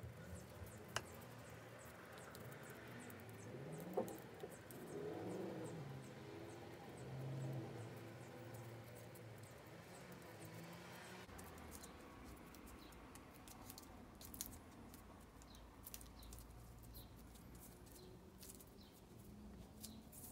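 Small clicks and taps come from a handle being turned in hands.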